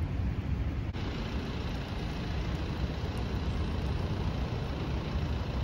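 A tram rolls past in the distance.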